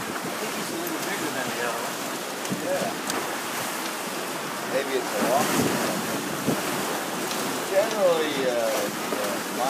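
An elderly man talks with animation nearby.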